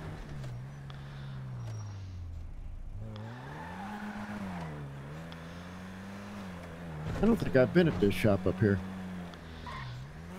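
A car engine hums steadily, its pitch rising and falling as it drives.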